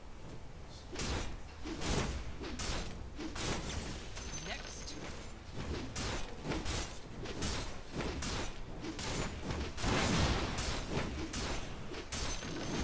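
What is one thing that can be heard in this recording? Game combat effects whoosh and crash in rapid bursts.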